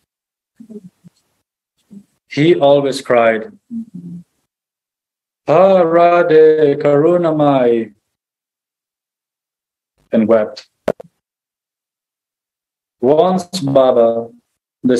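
A man speaks calmly in short phrases through an online call, with pauses between them.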